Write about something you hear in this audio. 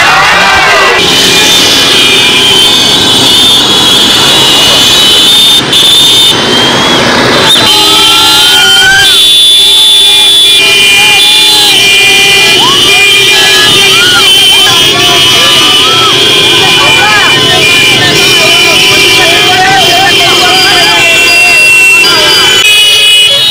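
A crowd sings and chants outdoors.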